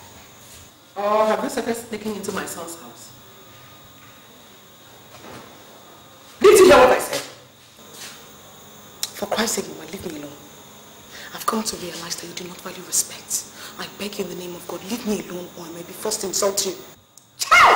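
A young woman speaks calmly and firmly.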